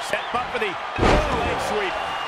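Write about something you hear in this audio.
A body slams heavily onto a wrestling ring mat with a loud thud.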